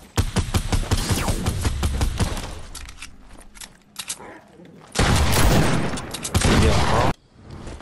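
Video game gunfire cracks in rapid bursts.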